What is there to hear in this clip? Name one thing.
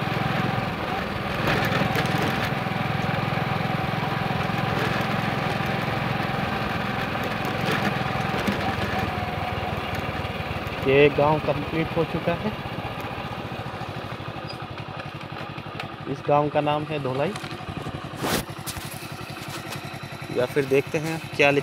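A motorcycle engine hums as the motorcycle rides along.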